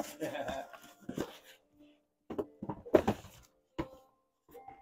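A cardboard shoebox lid thumps softly.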